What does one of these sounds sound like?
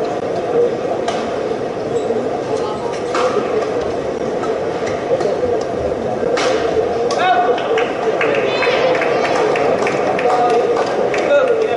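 A shuttlecock is struck sharply with rackets, back and forth.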